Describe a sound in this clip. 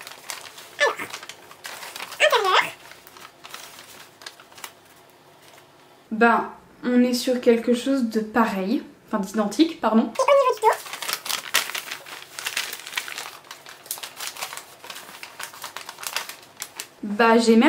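Fabric rustles as it is handled and folded.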